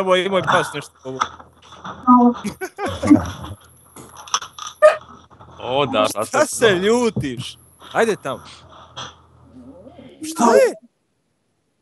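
Several men talk with animation over an online call.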